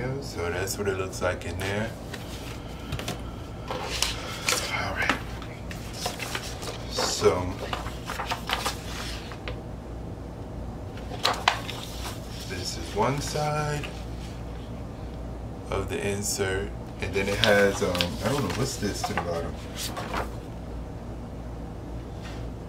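Stiff paper and plastic sleeves rustle and crinkle as hands handle them.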